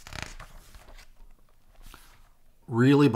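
Paper rustles as hands handle a book's pages.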